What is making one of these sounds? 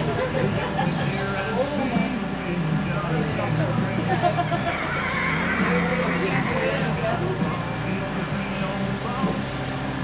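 A woman talks with animation nearby, outdoors.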